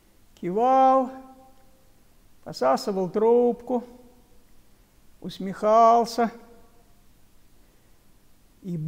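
An elderly man speaks calmly and slowly, close to a microphone, in short phrases with pauses.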